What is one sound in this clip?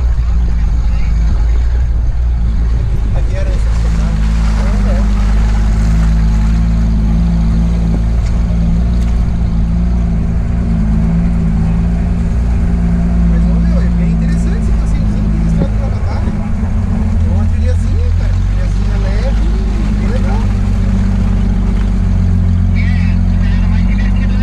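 Tyres squelch and splash through mud.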